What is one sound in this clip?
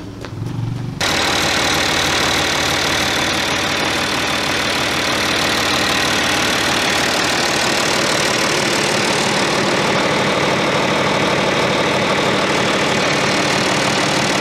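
A large diesel engine runs steadily with a loud, even roar.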